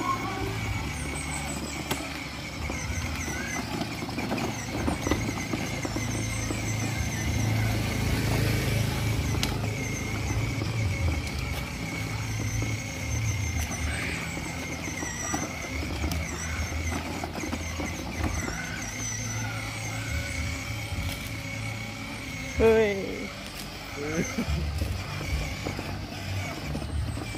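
Small plastic wheels crunch and rattle on gritty pavement.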